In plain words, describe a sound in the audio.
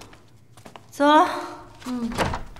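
A young woman speaks briefly nearby.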